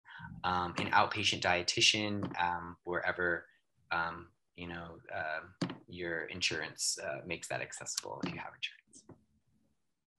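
A young man speaks steadily over an online call.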